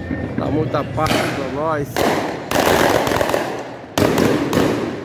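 A firework bursts with a loud boom nearby.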